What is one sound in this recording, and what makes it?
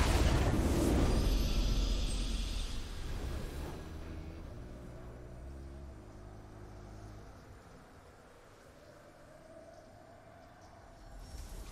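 A triumphant victory fanfare swells and fades.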